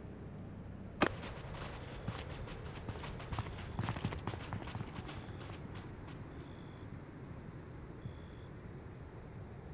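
Many footsteps tramp across sand, with armour clinking.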